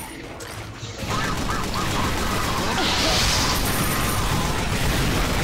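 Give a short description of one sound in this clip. Explosions boom and roar with flames.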